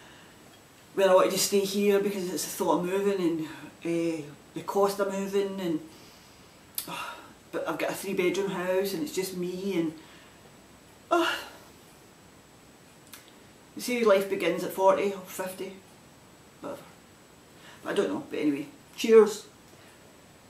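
A middle-aged woman talks calmly and close by.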